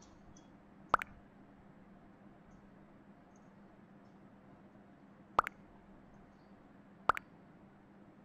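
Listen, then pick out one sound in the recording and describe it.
A short electronic blip sounds as each new chat message arrives.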